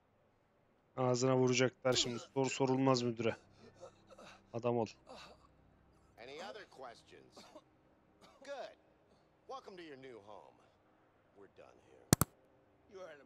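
A man speaks calmly close to a microphone.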